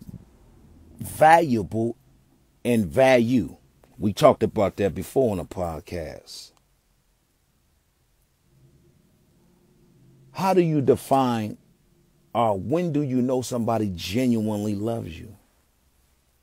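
A young man speaks close to the microphone with animation, in short bursts.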